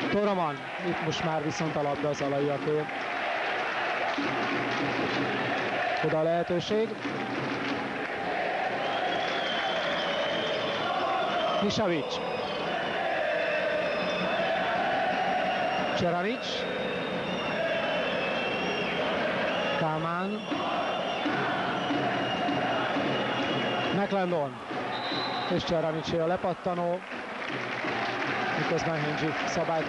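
A large crowd cheers and murmurs in an echoing hall.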